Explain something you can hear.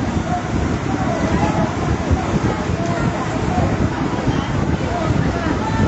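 Water from a hose sprays onto burning roofs.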